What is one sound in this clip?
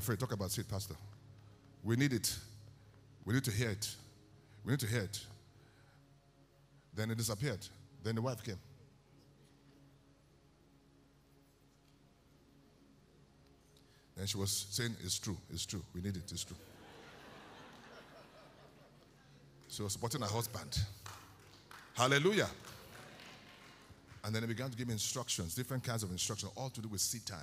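A man speaks with animation into a microphone in a large echoing hall.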